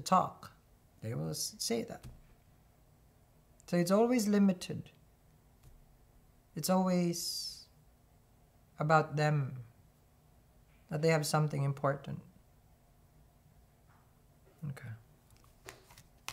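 A young man speaks calmly and close by, in short phrases with pauses.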